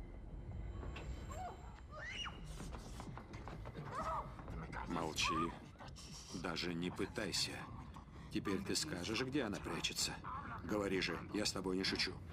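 A woman screams and cries out in muffled gasps close by.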